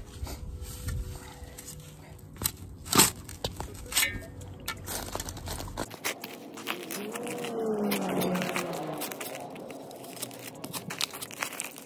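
A shovel blade scrapes and crunches into soil and wood chips.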